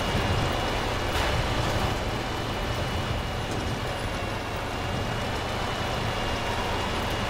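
Wind blows in a snowstorm.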